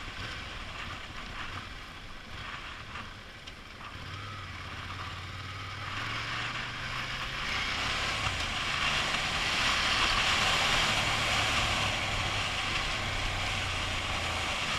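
Tyres crunch over a dirt road.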